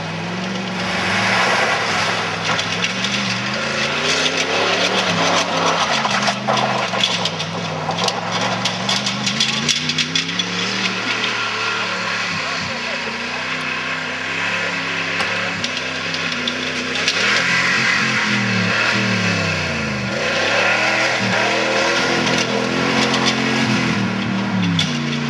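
Tyres spin and spray dirt and gravel.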